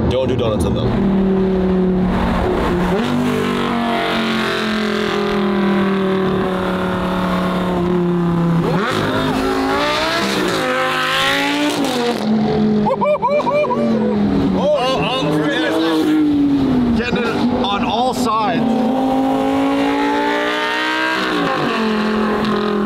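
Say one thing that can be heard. Engine noise and road roar hum steadily inside a moving car.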